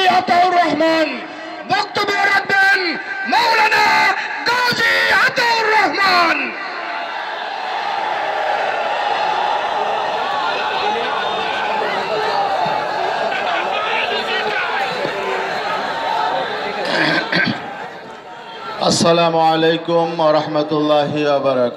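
A man speaks forcefully into a microphone, amplified over loudspeakers outdoors.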